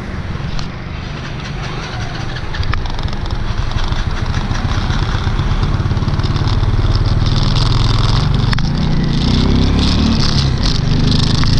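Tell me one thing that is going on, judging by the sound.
Motorbikes hum past on the road.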